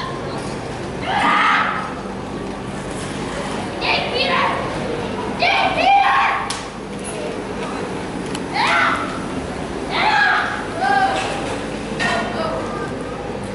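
A young woman calls out commands nearby.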